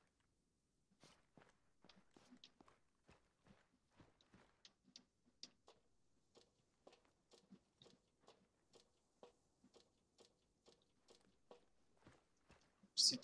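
Boots and hands clank steadily on metal ladder rungs.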